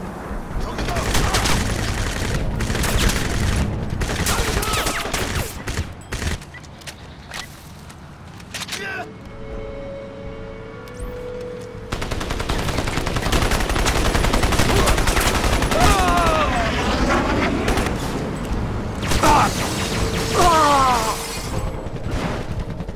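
Rapid gunfire rattles in sharp bursts.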